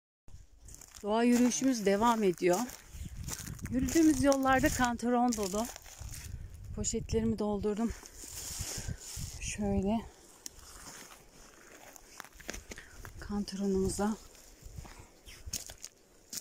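Footsteps crunch on dry twigs and leaves.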